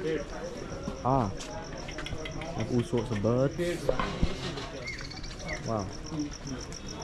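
Caged birds chirp and squawk close by.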